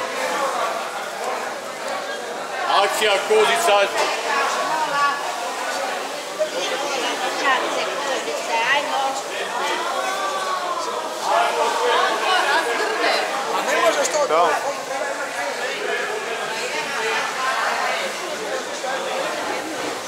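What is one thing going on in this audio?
Several people chatter in a tiled room that echoes.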